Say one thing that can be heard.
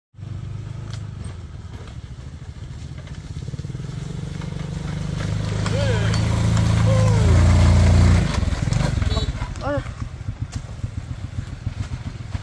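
A motorbike engine putters closer, grows loud as the motorbike passes close by, then idles lower.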